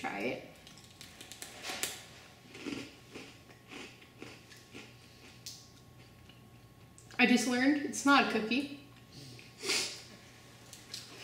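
A young woman crunches on a crispy rice cracker.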